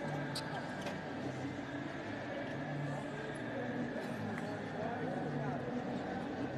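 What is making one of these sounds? Voices of players and spectators murmur and call out across a large echoing hall.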